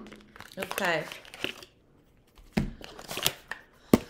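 Paper packaging rustles and crinkles.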